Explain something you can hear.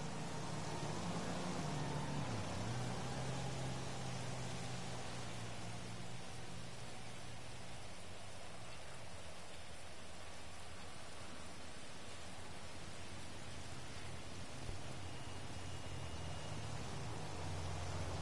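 Leaves rustle and swish as something pushes through dense bushes.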